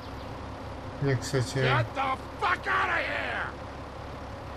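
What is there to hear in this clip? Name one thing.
An elderly man shouts angrily.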